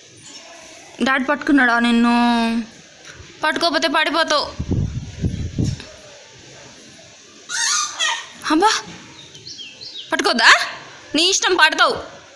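A toddler babbles and calls out loudly nearby.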